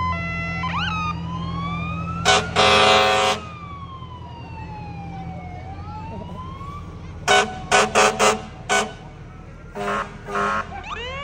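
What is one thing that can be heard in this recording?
A heavy truck engine rumbles as it rolls slowly past.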